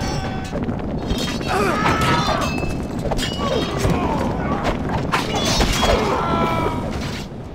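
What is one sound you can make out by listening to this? Weapons clash and clang against shields in a dense battle.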